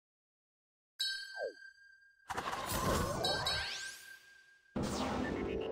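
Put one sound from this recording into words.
Video game attack effects whoosh and clash.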